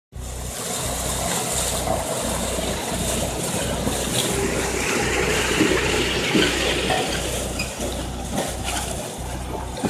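Metal and wood crunch and crack under a heavy roller.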